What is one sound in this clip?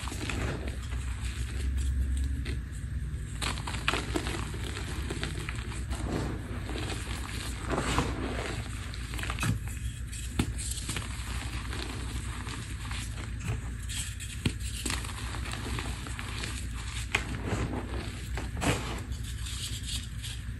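Hands crunch and crumble chalky powder.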